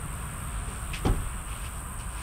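A wooden tailgate table drops open with a knock.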